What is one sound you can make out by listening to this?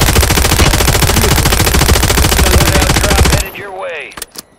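A gun fires rapid, loud bursts.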